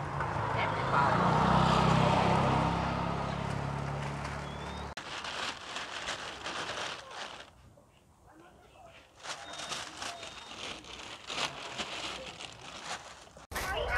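Plastic bags rustle as eggplants are packed.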